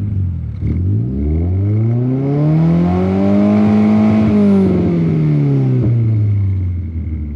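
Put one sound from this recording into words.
A car engine revs up smoothly and slowly winds back down.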